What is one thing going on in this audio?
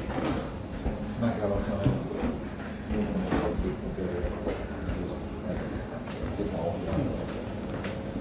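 Adults chatter nearby in a room.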